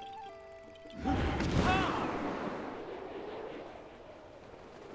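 A loud magical whoosh bursts and slowly fades.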